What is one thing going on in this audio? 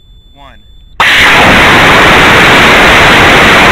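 A rocket motor roars loudly during launch.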